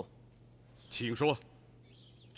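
A middle-aged man answers briefly and calmly.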